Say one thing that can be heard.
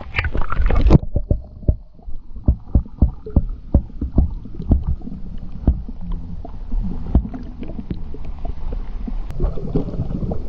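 Water sloshes and bubbles, heard muffled from under the surface.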